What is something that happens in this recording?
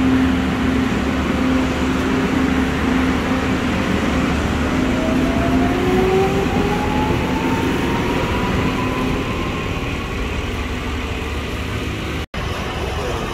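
A train pulls away with a rising electric motor whine.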